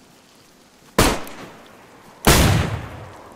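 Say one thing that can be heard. A revolver fires two loud shots that ring out.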